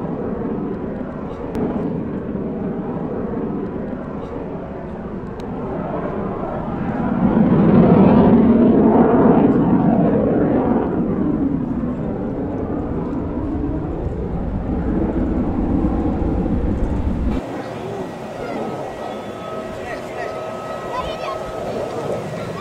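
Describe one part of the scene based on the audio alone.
A jet engine roars overhead, swelling louder and then slowly easing off.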